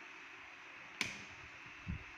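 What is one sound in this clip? A switch clicks once.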